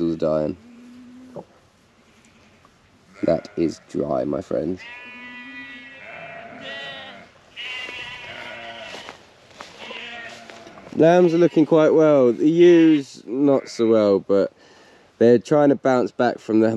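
A man speaks animatedly close to the microphone.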